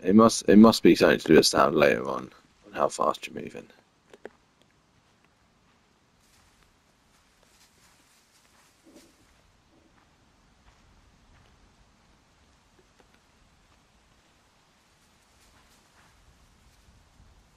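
Footsteps rustle softly through long grass.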